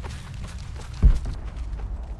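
A heavy thud lands once.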